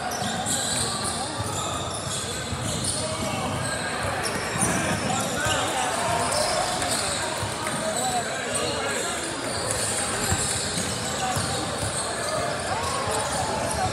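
Many voices chatter and call out in a large echoing gym.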